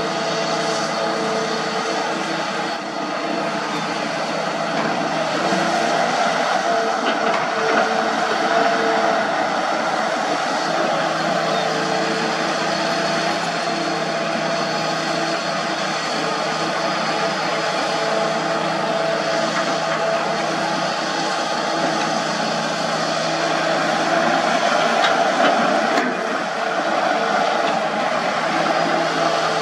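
A diesel engine rumbles and whines steadily close by.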